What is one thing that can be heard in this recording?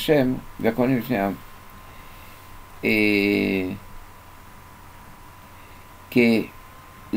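An elderly man speaks calmly in short phrases into a microphone.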